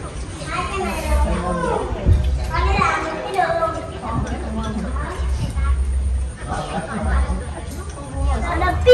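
Chopsticks and spoons clink against bowls.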